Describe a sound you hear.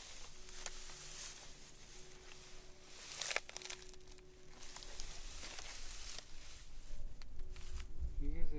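Dry grass rustles and crackles underfoot.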